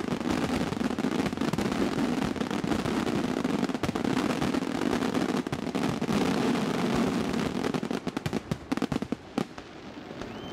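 Fireworks crackle and fizzle rapidly overhead.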